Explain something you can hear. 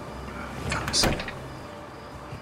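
A man speaks briefly into a phone.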